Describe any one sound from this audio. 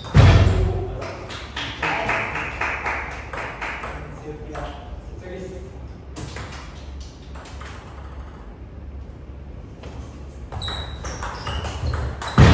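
A table tennis ball clicks off paddles and the table in a room with some echo.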